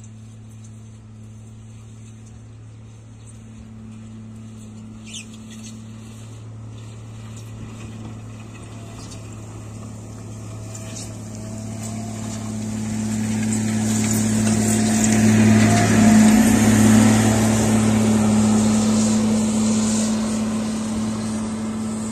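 A loader's diesel engine rumbles steadily and grows louder as it comes close.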